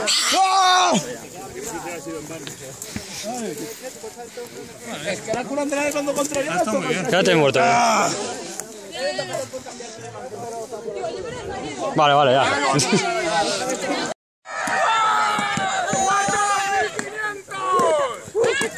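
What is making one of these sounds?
Young people talk and laugh nearby outdoors.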